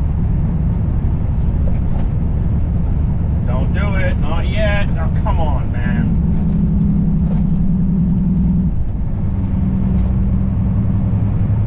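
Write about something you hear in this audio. Tyres roll and rumble on the road surface.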